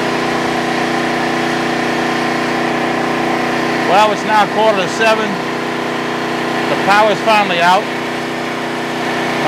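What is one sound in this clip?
A generator hums steadily nearby.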